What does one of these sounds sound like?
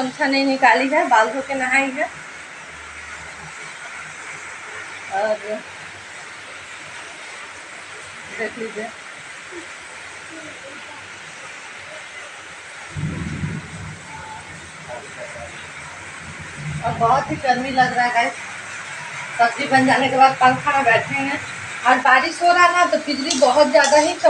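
A woman talks with animation close to a phone's microphone.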